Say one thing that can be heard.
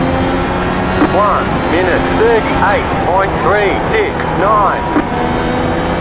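A racing car engine revs up and down quickly as the gears change.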